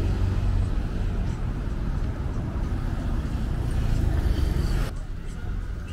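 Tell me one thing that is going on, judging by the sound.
Cars drive past close by on a wet road.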